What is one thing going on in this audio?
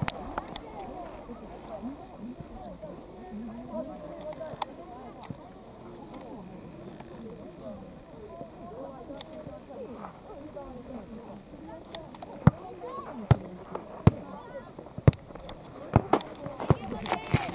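Young boys shout and call to each other outdoors.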